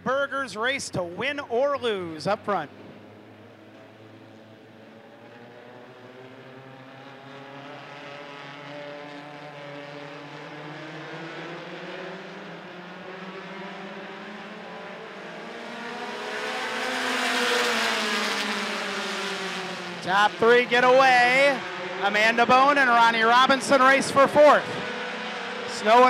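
Race car engines roar together as the cars circle the track.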